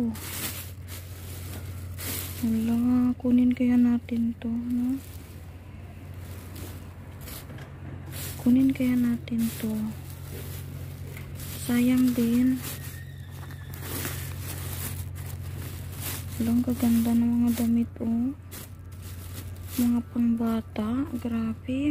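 A plastic bag rustles and crinkles as clothes are rummaged through.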